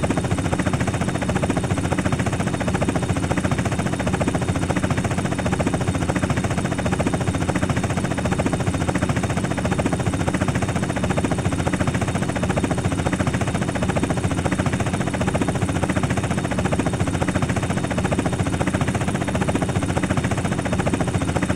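A helicopter's rotor chops steadily and loudly close by.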